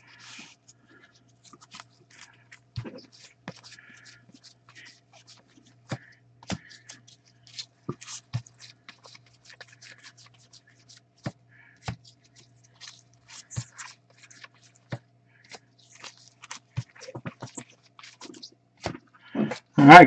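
Trading cards rustle and click as they are handled close by.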